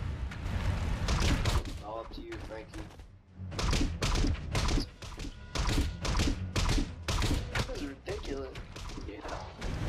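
Sword blows land in quick, sharp hits.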